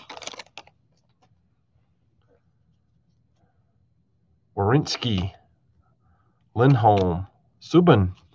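Trading cards slide and shuffle against each other.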